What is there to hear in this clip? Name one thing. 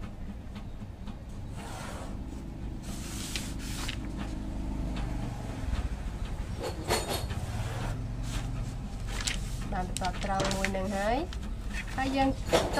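A marker pen scratches along paper against a ruler.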